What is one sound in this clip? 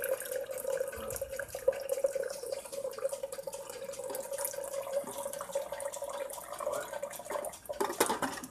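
Hot water pours from a kettle into a glass pot.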